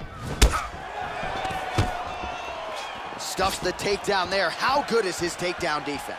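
Punches land on a body with dull thuds.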